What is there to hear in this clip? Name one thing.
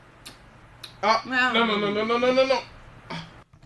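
A man sings with strained emotion close by.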